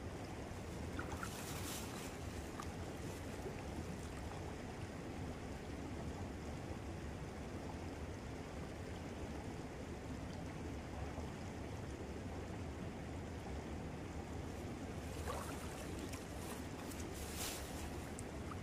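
Water splashes as a man wades and moves a bag through a stream.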